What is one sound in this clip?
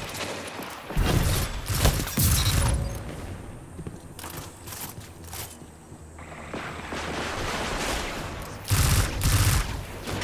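A heavy gun fires in loud bursts.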